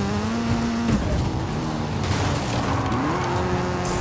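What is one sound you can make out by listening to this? Tyres skid on loose ground.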